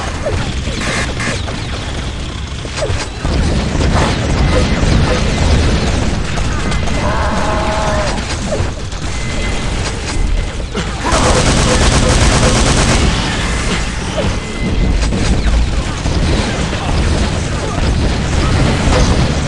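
Gunfire and rockets blast and boom in quick, loud bursts.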